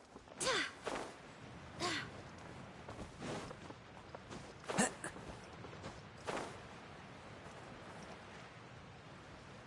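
Wind rushes past as a character glides through the air.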